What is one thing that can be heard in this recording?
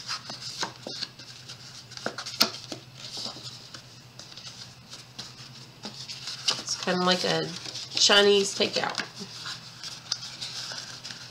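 Stiff paper rustles and creases as it is folded by hand.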